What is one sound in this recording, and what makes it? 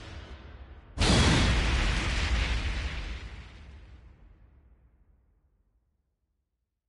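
A loud fiery whoosh bursts out and slowly fades away.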